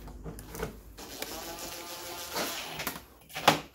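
A cordless drill whirs.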